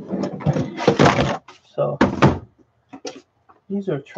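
A laptop clatters as it is set down on a hard surface.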